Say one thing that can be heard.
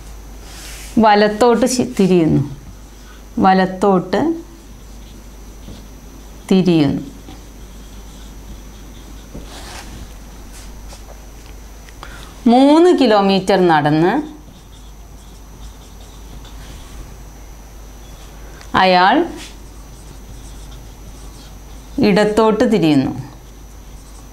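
A woman speaks calmly in short phrases.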